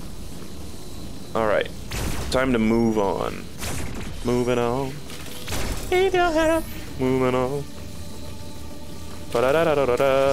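An energy blaster fires in short bursts.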